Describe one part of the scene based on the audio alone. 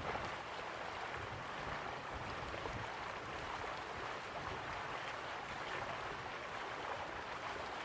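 Water rushes steadily down a waterfall in the distance.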